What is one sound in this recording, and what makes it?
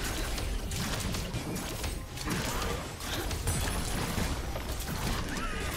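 Fantasy combat sound effects of spells and hits crackle and whoosh in quick bursts.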